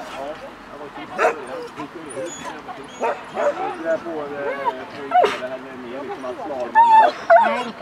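Several people chat in the background outdoors.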